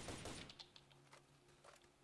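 A rifle's magazine clicks and clatters as the rifle is reloaded.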